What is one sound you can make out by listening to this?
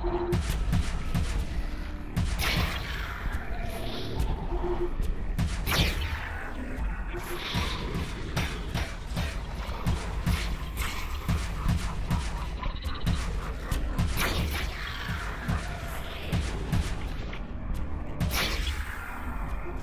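Monsters burst apart with wet, crunching splatters.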